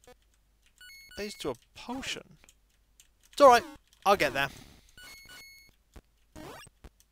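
Retro video game sound effects bleep in short bursts.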